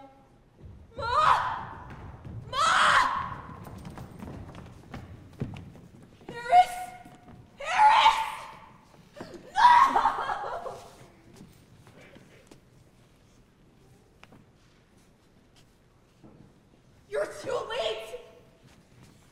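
A young woman screams and wails in distress in a large hall.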